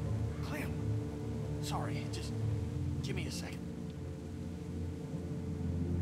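A man apologizes in a strained voice.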